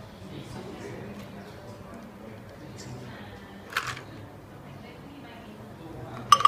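A thick drink pours from a shaker into a glass.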